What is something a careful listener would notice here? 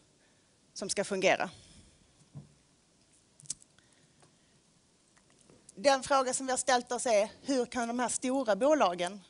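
A woman speaks into a microphone in a large hall.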